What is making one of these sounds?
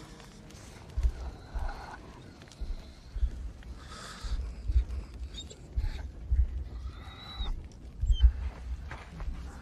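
Animals shuffle and bump close by with soft dull thuds.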